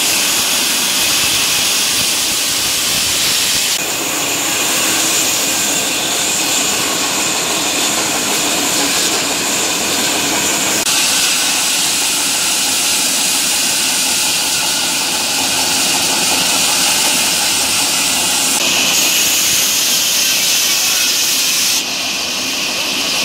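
A band saw whines loudly as it cuts through a wooden log.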